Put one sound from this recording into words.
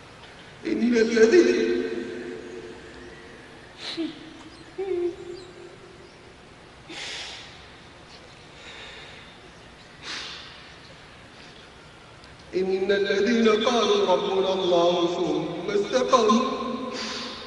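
A man chants a recitation slowly through a microphone, in a large echoing space.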